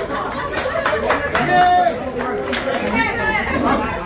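People clap their hands along while dancing.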